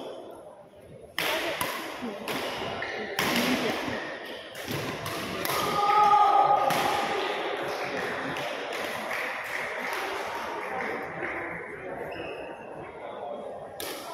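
Children chatter and call out across the hall.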